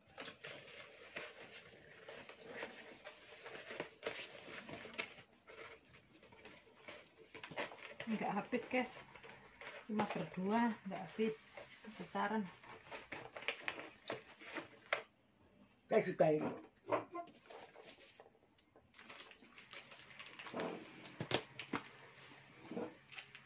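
A cardboard box rustles and scrapes as hands open and handle it.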